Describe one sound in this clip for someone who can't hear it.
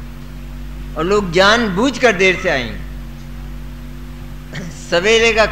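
An elderly man speaks calmly into a microphone, giving a talk.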